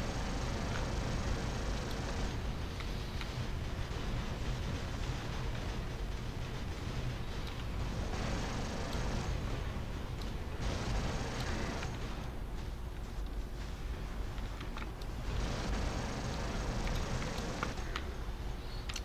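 Heavy guns fire in steady bursts.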